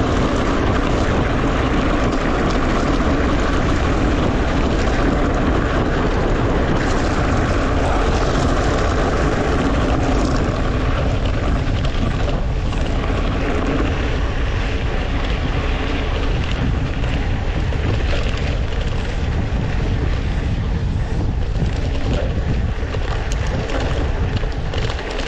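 Wind rushes and buffets close by outdoors.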